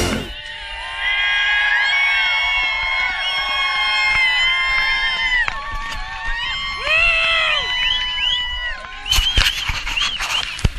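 A crowd of people shouts and cheers outdoors.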